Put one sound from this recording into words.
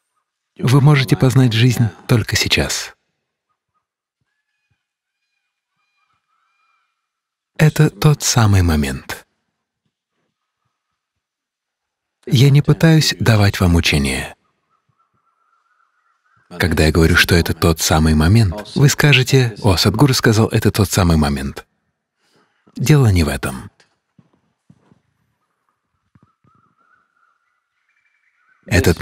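An elderly man speaks calmly into a microphone, in bursts with pauses between.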